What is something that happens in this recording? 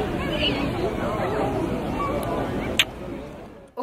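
People chatter faintly in the distance outdoors.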